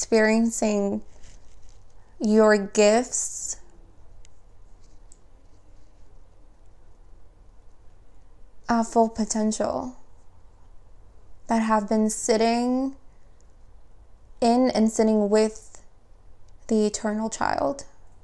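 A young woman speaks calmly and slowly into a nearby microphone, with long pauses.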